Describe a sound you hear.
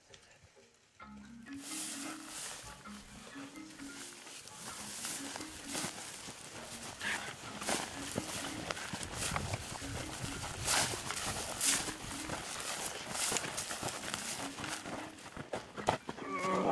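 Footsteps crunch through dry grass and brush outdoors.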